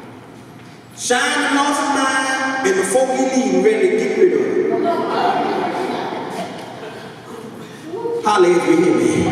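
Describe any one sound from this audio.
A man speaks with animation through a microphone and loudspeakers in an echoing hall.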